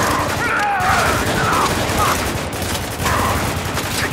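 A machine gun fires rapid bursts of shots.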